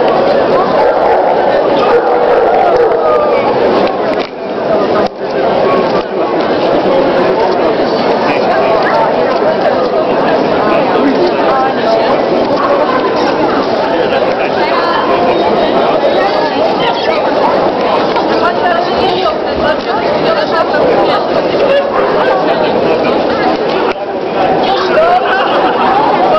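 A crowd of people chatters steadily in a large echoing hall.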